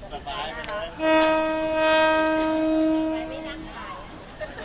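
A train horn blares long and steady in the distance.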